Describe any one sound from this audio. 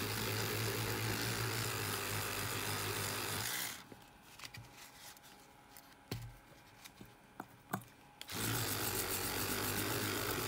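An electric toothbrush buzzes steadily.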